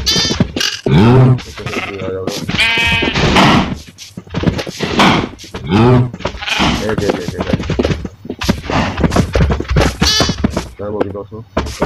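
A cow moos several times nearby.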